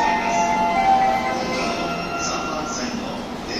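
An electric train hums softly while standing at a platform.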